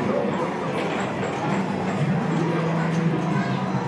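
Arcade games beep and play music.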